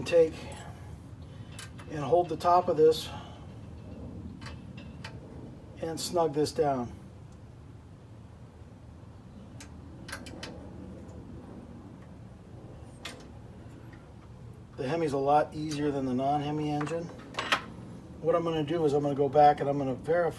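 A man talks calmly and close by, in short bursts.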